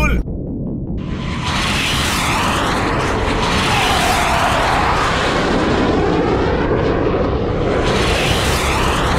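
A jet roars loudly past overhead.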